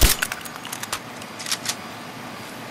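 Metal clicks sharply as a rifle is handled.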